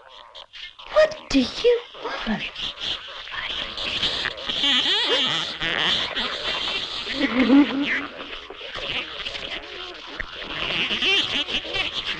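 A woman gasps and whimpers in fear close by.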